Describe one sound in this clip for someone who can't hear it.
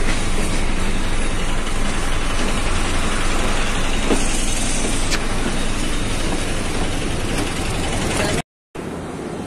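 A vehicle engine rumbles steadily nearby.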